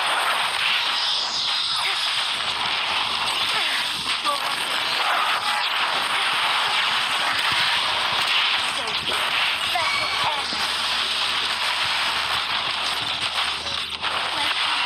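Sword slashes and magic blasts crackle and whoosh in a fight.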